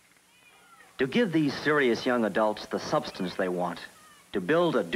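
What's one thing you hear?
A man speaks calmly and clearly.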